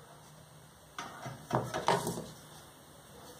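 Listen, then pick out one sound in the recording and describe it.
A metal bar scrapes and clanks on a board.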